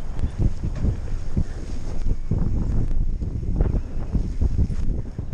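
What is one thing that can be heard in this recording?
A mountain bike rattles and bumps quickly over a dirt trail.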